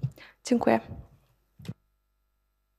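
A young woman speaks calmly into a microphone.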